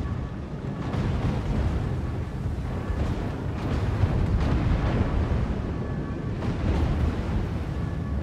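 Heavy guns boom and shells explode with deep rumbling blasts.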